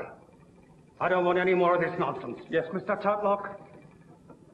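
An elderly man speaks firmly and gravely nearby.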